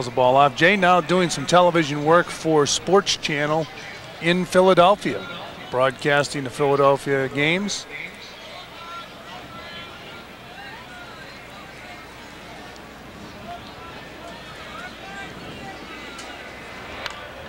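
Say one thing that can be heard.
A crowd murmurs faintly outdoors.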